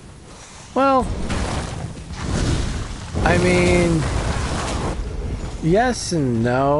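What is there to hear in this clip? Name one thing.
Fire bursts with a loud whooshing roar.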